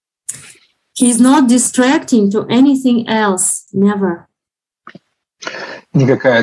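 A young woman speaks warmly over an online call.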